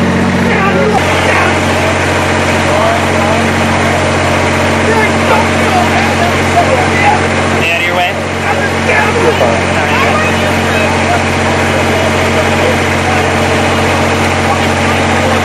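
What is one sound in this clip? A crowd of men and women talk over one another outdoors.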